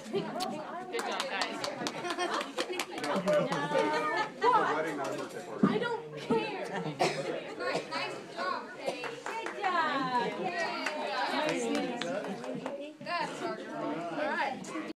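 Several people talk and laugh nearby.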